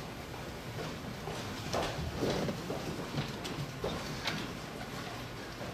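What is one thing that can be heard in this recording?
Footsteps thud across a floor.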